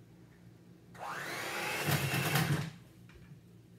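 An electric hand mixer whirs briefly.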